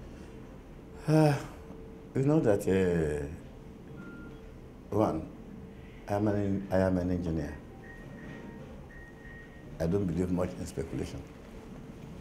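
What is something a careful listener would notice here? An older man talks calmly, pausing between phrases, close to a microphone.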